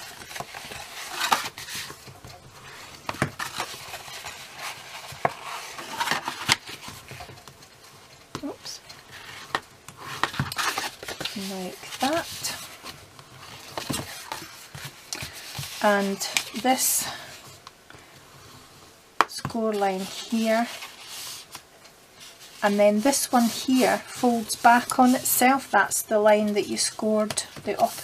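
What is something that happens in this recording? Paper rustles and crinkles as it is folded and handled.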